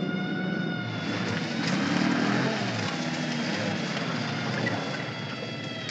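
A car engine rumbles as a car approaches.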